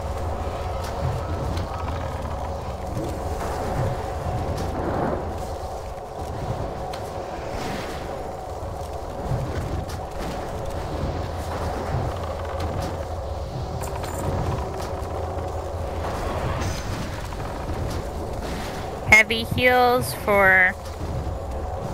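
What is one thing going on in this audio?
Magic spells crackle and thump in a fight.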